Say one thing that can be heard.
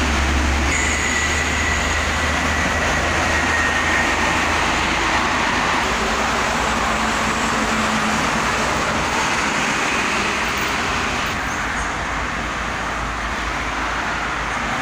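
Heavy trucks and cars rush past at speed on a busy highway, with a steady roar of tyres.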